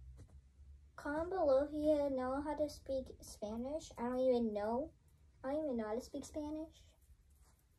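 A young girl sings a melody nearby.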